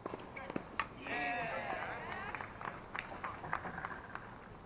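A tennis ball is struck with a racket with sharp pops outdoors.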